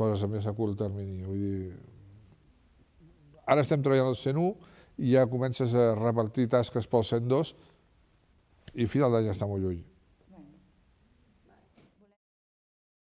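A middle-aged man speaks calmly and close by, in short phrases.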